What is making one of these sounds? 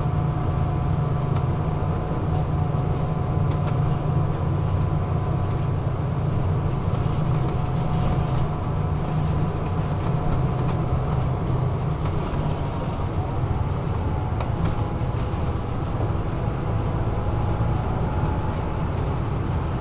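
Tyres roll over the road with a steady rumble.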